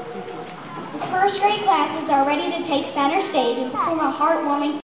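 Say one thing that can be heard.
Young children chatter and call out in a hall.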